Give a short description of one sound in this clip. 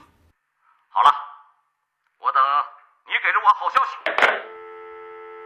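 Another middle-aged man answers briefly into a telephone.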